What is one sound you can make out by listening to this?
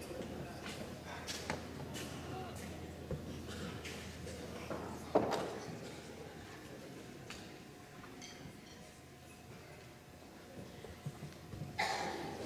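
Mallet percussion instruments play scattered notes that ring out in a large echoing hall.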